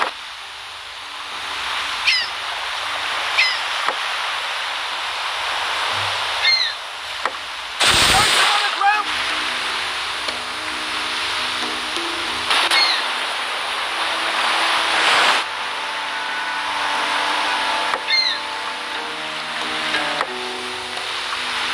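Waves rush and splash against a sailing ship's hull.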